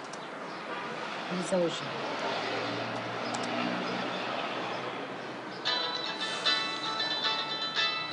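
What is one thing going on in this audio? Keys clatter on a laptop keyboard.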